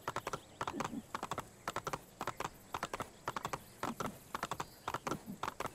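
Horse hooves clatter in a quick, steady gallop on a stone path.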